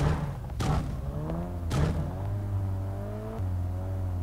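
A car engine hums steadily as the car drives off.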